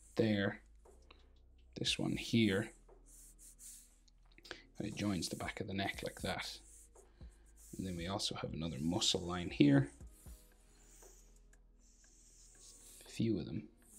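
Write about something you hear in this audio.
A felt marker squeaks and scratches across paper.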